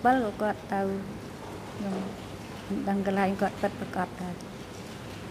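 A woman speaks briefly and calmly into a microphone.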